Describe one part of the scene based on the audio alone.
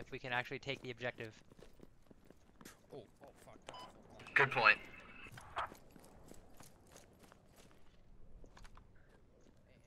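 Footsteps crunch on sandy ground.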